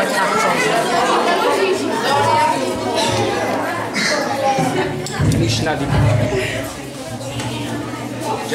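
A group of young people sings together in an echoing hall.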